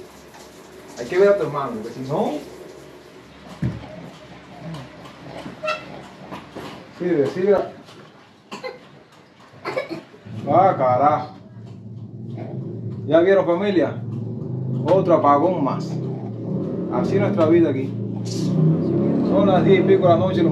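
A young man speaks casually, close by.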